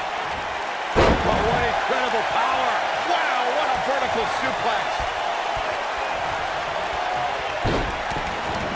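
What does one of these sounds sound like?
A wrestler's body slams heavily onto the ring mat.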